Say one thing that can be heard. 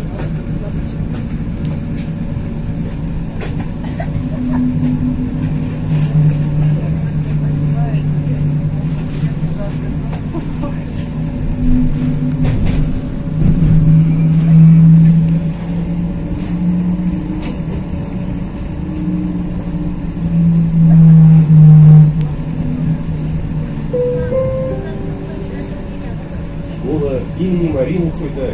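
Tyres rumble over the road.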